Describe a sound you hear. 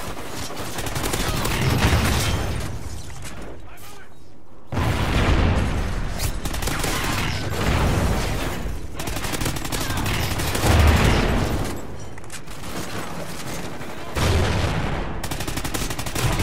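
Rapid gunfire crackles in a video game.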